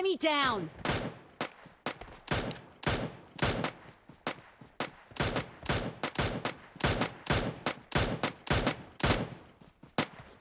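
Footsteps rustle quickly through grass as someone runs.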